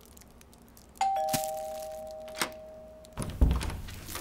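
A doorbell chimes two notes.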